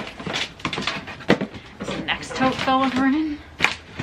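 Plastic bins knock and scrape against each other.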